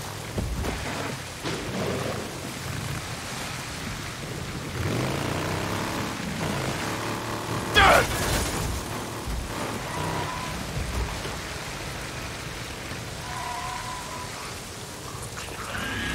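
A motorcycle engine runs and revs.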